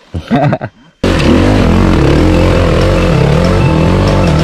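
A motorcycle engine roars loudly and steadily.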